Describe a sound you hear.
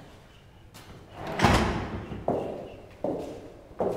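A door swings shut with a thud.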